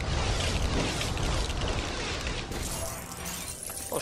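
A magic spell crackles and whooshes.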